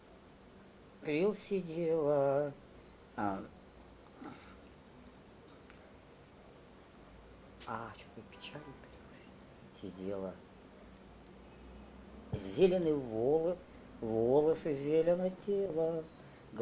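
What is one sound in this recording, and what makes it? An older man speaks slowly and hesitantly up close, with long pauses.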